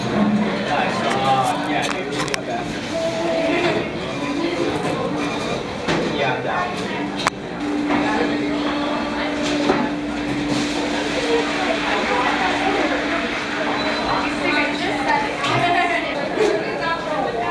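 A crowd of people chatter nearby in a busy room.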